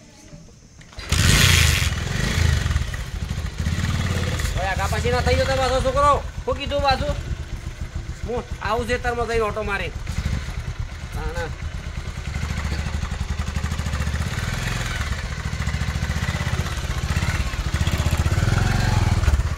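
A motorcycle engine starts and idles with a steady rumble.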